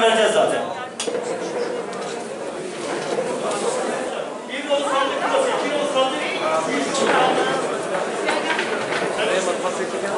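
A crowd of men murmurs and talks in a large echoing hall.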